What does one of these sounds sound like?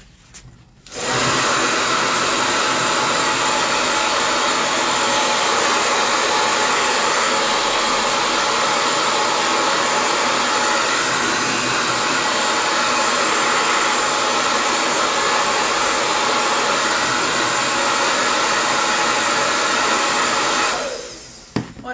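A hair dryer blows loudly and steadily close by.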